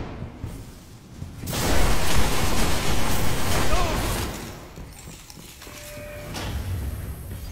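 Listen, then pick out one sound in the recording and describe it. A handgun fires with loud booming shots.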